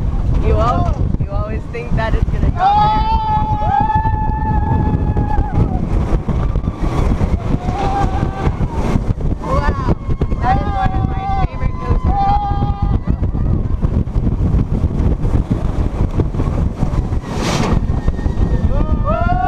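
A young man screams and shouts excitedly close by.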